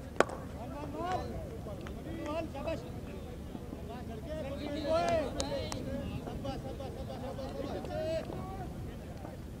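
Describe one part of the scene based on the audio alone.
Men shout and call out in the distance outdoors.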